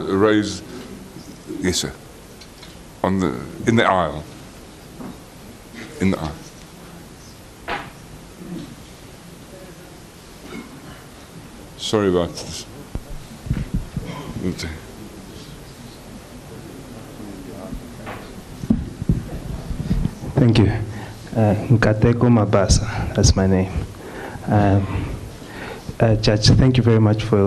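A man speaks slowly and deliberately through a microphone in a large hall.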